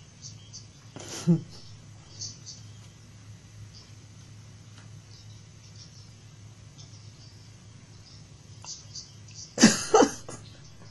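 A woman laughs close to a microphone.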